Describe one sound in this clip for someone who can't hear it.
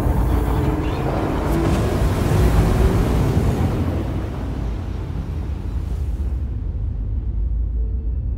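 A spaceship engine roars with a deep, steady rumble.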